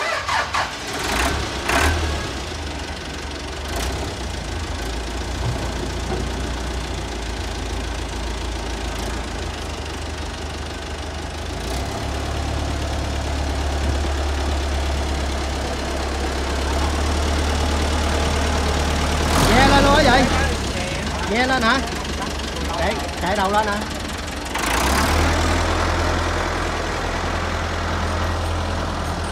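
A tractor's diesel engine idles with a steady low rumble.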